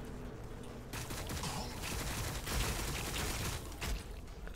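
A laser weapon fires with a harsh buzzing crackle.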